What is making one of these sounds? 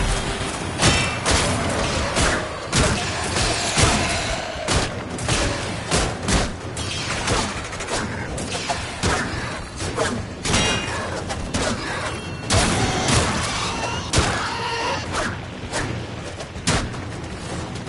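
Explosions burst with loud crackling blasts.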